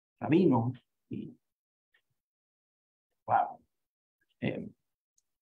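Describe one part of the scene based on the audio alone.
A man speaks calmly in short phrases through a microphone on an online call.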